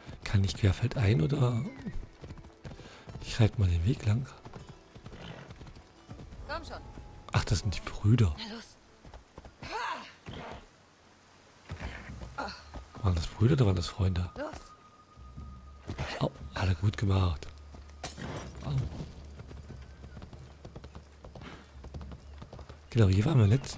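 A horse gallops with hooves thudding on dirt and wooden boards.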